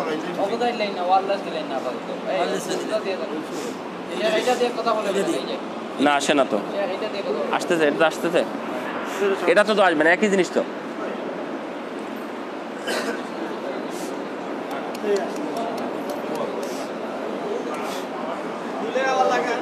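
A crowd of men murmurs and talks in a large echoing hall.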